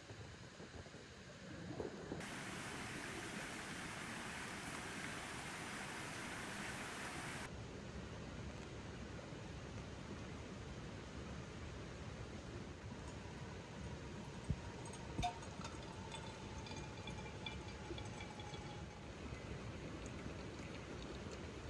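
Hot water pours from a metal kettle into a paper coffee filter.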